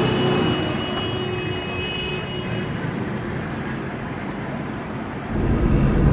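A motorbike engine putters by.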